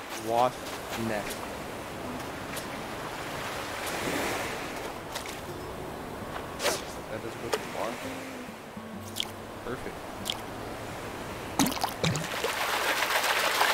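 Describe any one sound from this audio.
Gentle waves wash onto a beach.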